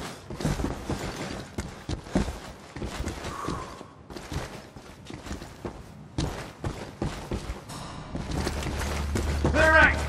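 Footsteps crunch on rubble as soldiers walk.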